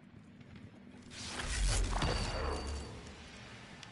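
An electric blast crackles and roars.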